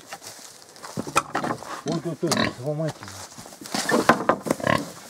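A pig grunts and squeals loudly up close.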